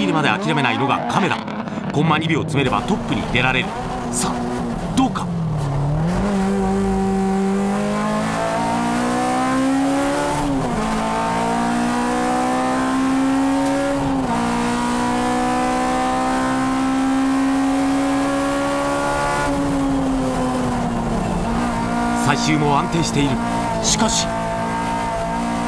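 A racing car engine roars loudly from inside the cabin, revving up and down through gear changes.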